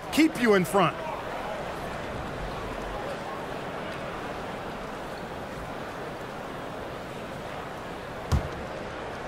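A large crowd murmurs steadily in a big echoing arena.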